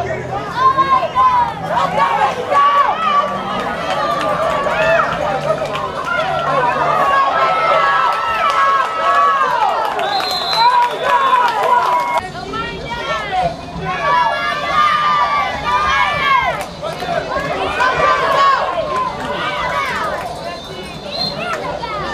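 A crowd of young players and adults shouts and cheers outdoors.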